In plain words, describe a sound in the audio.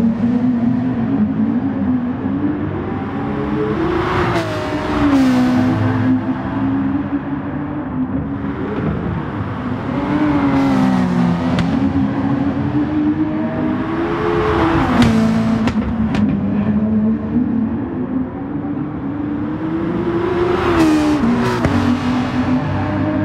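Racing car engines roar loudly, rising and falling in pitch as they shift gears.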